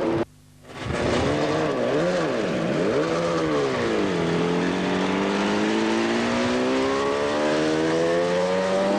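A racing motorcycle engine roars loudly, its pitch rising and falling as it shifts gears.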